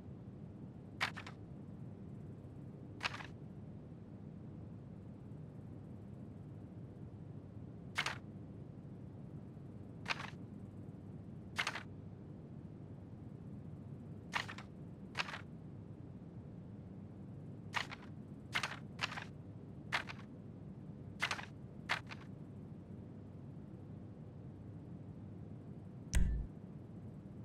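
Short electronic menu clicks sound as options are scrolled and selected.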